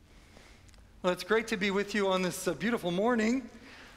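A middle-aged man chants through a microphone in a large echoing space.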